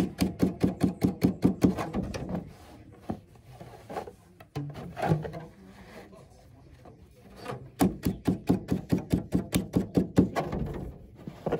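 A wooden beater taps rapidly on threads on a loom.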